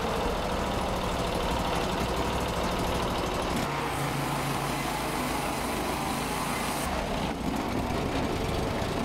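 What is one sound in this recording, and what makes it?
The engine of a portable band sawmill runs.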